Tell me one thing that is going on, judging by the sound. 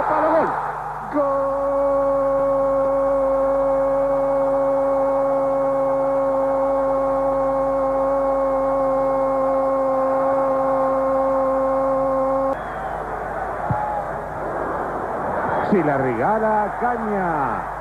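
A large crowd cheers in a stadium.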